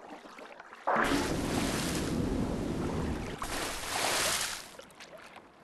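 Water splashes and churns loudly.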